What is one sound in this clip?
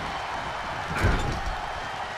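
A heavy blow lands with a sharp thud.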